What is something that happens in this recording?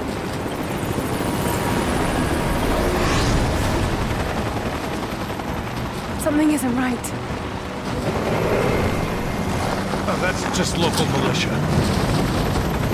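A helicopter's rotor thuds overhead.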